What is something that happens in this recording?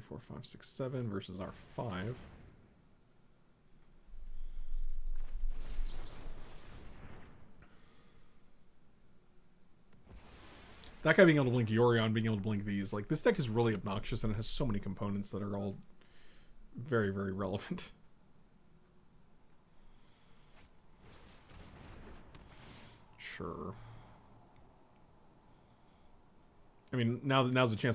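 A middle-aged man talks calmly into a microphone.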